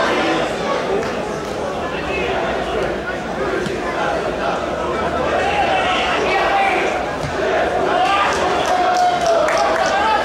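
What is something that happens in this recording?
A distant crowd chants and cheers in an open-air stadium.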